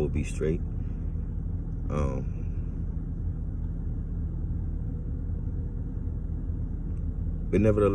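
A man speaks briefly and calmly close to the microphone, with long pauses.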